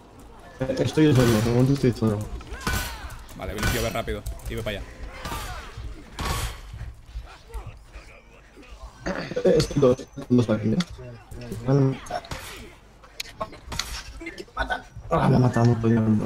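Swords and shields clash and clang in a battle.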